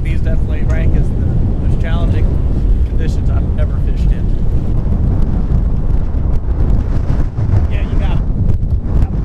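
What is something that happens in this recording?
A man talks loudly over the wind.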